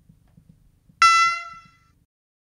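A higher diesel horn sounds briefly.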